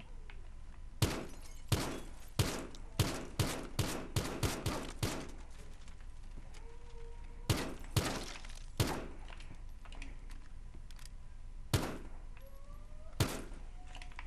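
A pistol fires a rapid series of sharp, echoing shots.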